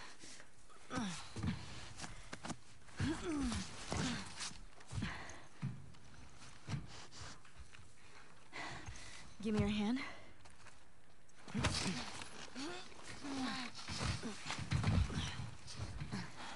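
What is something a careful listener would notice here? A second young woman answers.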